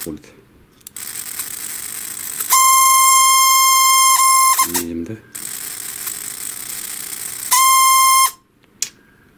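A small electric motor whirs with a high, buzzing whine.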